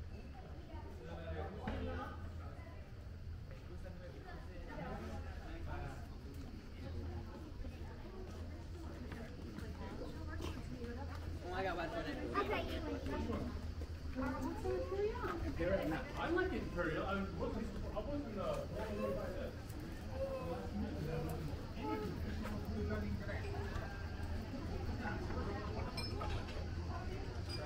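Footsteps scuff on a stone lane.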